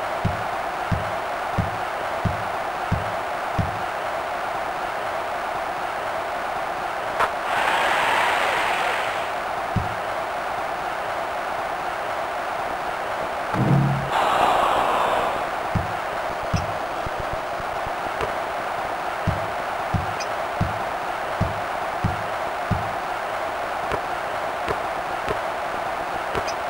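A basketball bounces steadily on a hardwood court.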